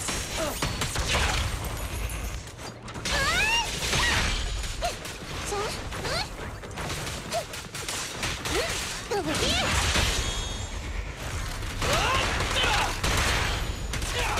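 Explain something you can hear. Explosions burst loudly.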